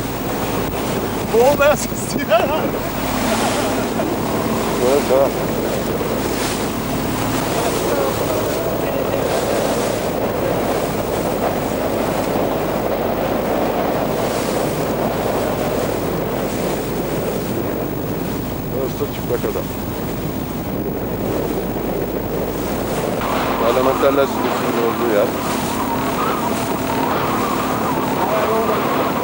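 A boat engine drones steadily on open water.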